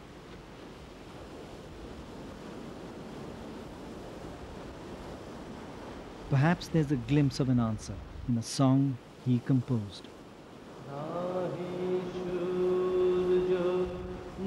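Waves wash softly across open water.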